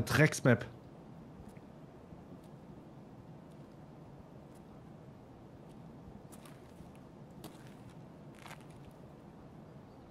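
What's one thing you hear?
Footsteps tread softly on a hard floor.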